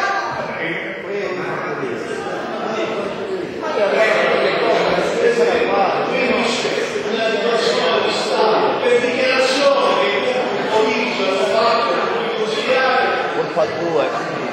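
An elderly man speaks loudly and with animation in a large echoing hall.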